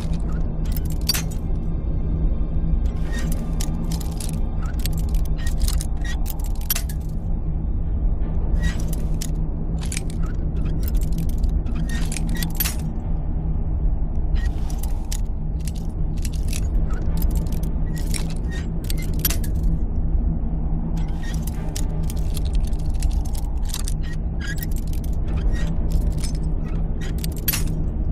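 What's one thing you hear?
A metal lockpick scrapes and clicks inside a lock.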